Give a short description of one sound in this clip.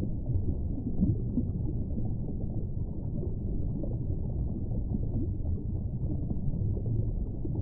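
Water rumbles and swirls, heard muffled underwater.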